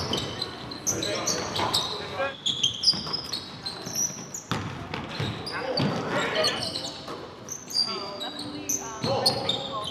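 Players shout and call out to each other in a large echoing gym.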